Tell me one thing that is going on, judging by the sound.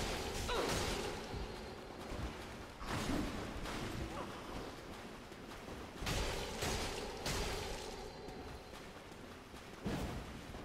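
Swords clash and slash in a game fight.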